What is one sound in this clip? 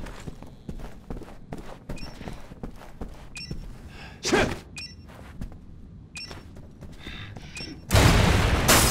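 Footsteps thud steadily.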